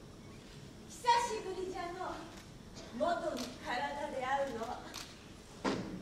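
A young woman speaks with emotion.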